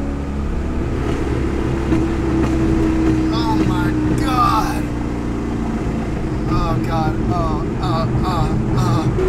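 A car engine hums steadily while driving, with a low road rumble.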